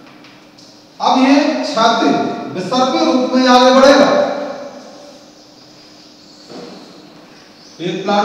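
A man speaks with animation in a slightly echoing room.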